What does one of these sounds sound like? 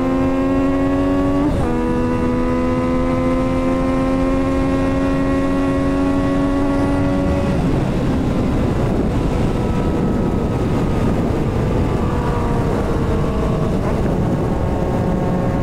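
Wind roars steadily past the rider.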